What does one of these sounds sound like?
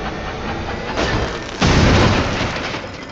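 A loud burst of sparks bangs out.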